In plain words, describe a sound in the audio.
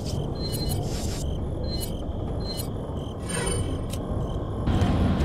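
Short electronic menu beeps click several times.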